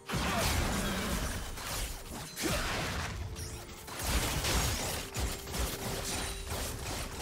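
Game spell effects blast and crackle in a fight.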